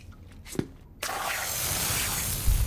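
Gas hisses out in a burst.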